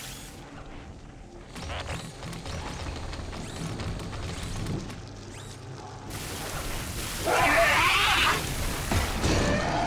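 A mechanical spider robot clanks and whirs as it walks.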